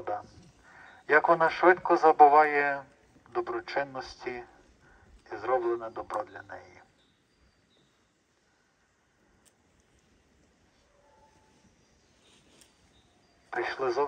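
A man prays aloud into a handheld microphone, heard outdoors through a loudspeaker.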